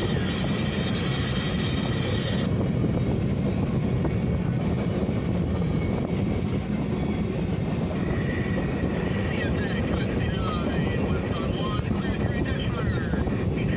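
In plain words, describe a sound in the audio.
A railway crossing bell rings.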